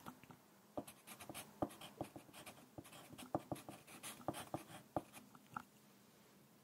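A pencil scratches and taps on paper close by.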